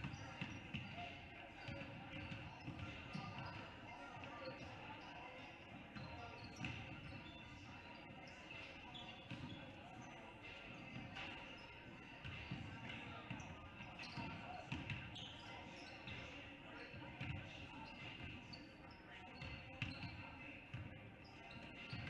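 Sneakers squeak on a wooden court in a large echoing gym.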